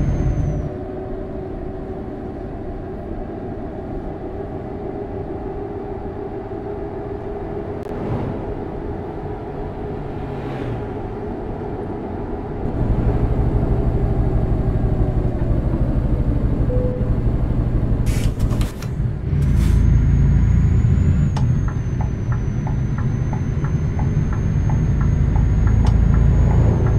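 A truck engine hums steadily, growing louder and deeper partway through.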